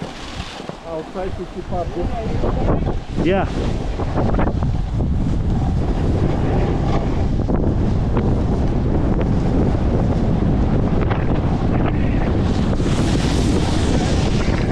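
A snowboard scrapes and hisses steadily over packed snow.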